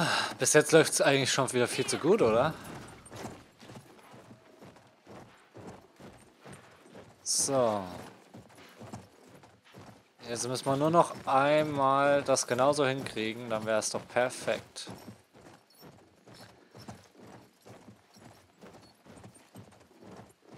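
A horse gallops with steady, soft hoofbeats on sand.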